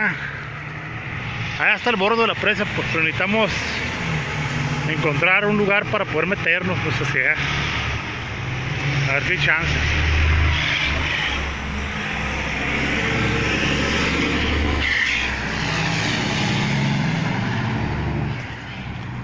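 Traffic rumbles past on a nearby road.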